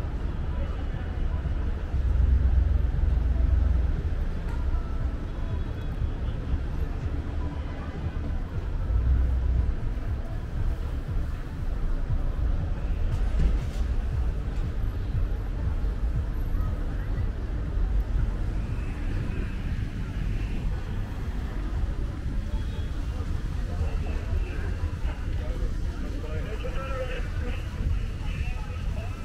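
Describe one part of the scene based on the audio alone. Wind buffets with a low rumble.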